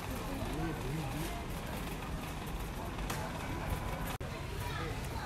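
A shopping cart rattles as it rolls along a hard floor.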